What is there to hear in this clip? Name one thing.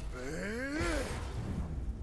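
Stone blocks crash and crumble.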